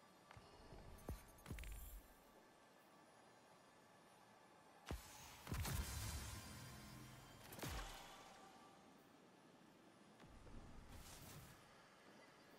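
Soft electronic whooshes and chimes sound as menu options are chosen.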